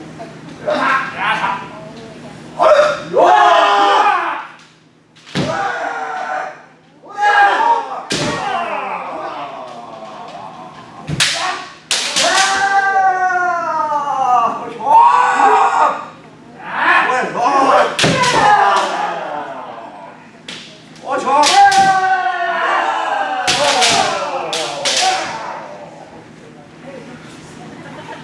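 Fencers shout loudly in a large echoing hall.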